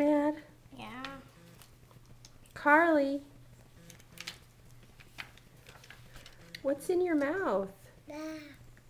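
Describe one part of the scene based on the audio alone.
A toddler girl babbles and calls out in a high voice close by.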